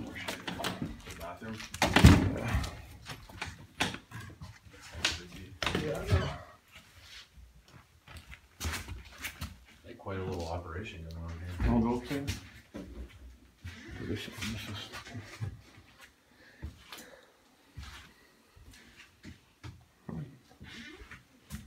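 Footsteps scuff and crunch on a gritty tiled floor.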